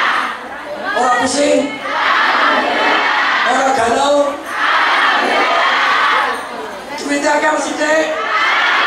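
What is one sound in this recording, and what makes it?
A man speaks with animation into a microphone, heard through loudspeakers in a large room.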